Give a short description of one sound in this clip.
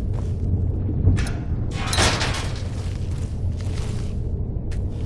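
A metal cage door swings shut with a clank.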